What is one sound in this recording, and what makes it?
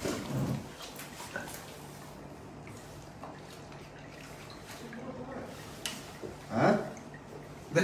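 Liquor pours from a bottle into glasses.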